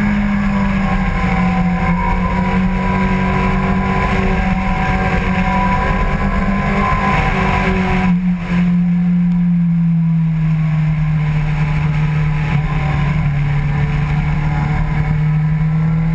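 A motorcycle engine roars loudly at high revs, dropping in pitch as it eases off.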